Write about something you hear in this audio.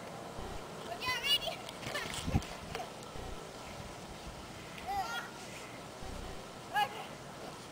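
Young girls call out and squeal nearby outdoors.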